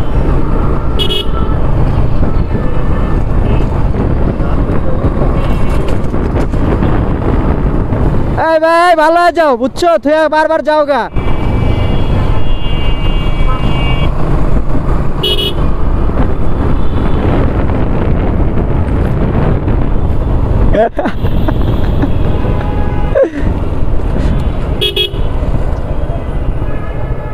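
A single-cylinder motorcycle engine runs while riding.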